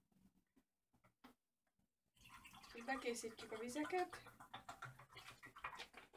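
Water pours from a plastic bottle into a glass.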